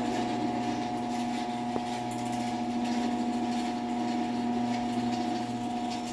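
A garage door opener motor hums steadily as it runs.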